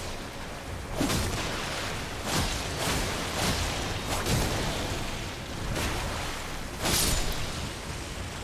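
A sword slashes and strikes with sharp hits.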